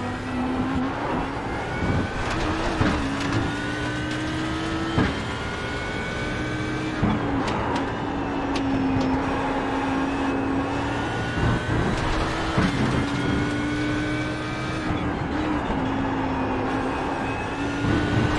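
A racing car engine roars at high revs, rising through the gears and dropping as it brakes.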